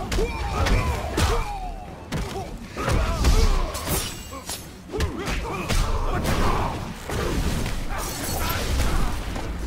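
A fighter grunts and cries out with each strike.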